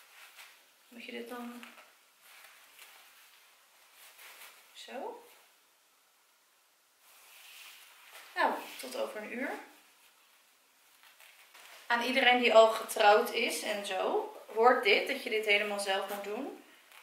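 A young woman speaks close by, calmly and with some animation.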